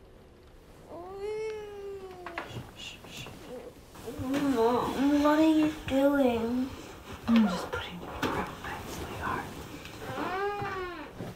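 A young woman sobs and wails close by.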